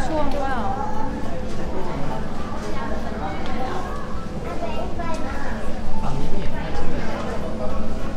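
A young girl chatters nearby.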